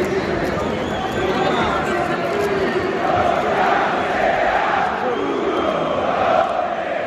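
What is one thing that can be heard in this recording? Many fans sing together in loud, swelling chants.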